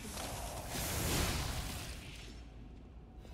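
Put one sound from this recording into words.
A fiery blade strike roars with a crackling burst.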